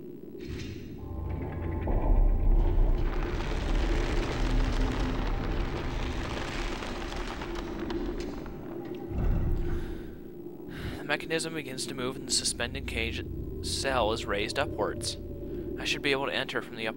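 A heavy mechanism rumbles and grinds.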